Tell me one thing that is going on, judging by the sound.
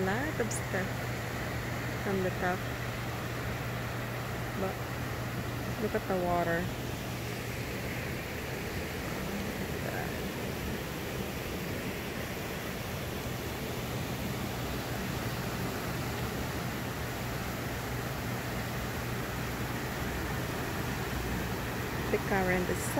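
Churning water rushes and roars steadily outdoors.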